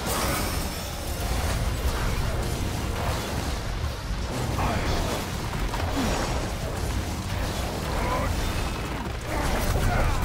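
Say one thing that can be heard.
Heavy rumbling impacts boom continuously.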